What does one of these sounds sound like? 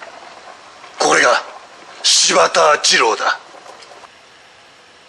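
A man talks close by, in a casual, animated way.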